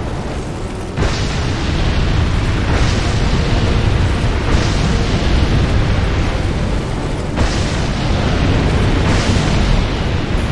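Fireballs burst with loud whooshing blasts.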